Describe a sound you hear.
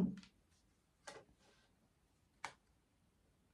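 Cards rustle softly as they are handled.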